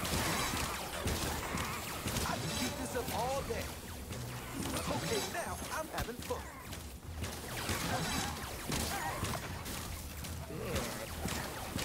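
Sword strikes clash and slash repeatedly.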